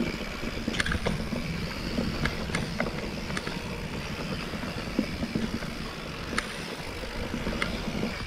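A bicycle's frame and chain rattle and click over bumps.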